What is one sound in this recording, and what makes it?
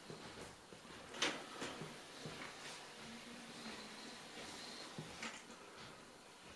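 A robot vacuum cleaner hums softly as it moves across the floor.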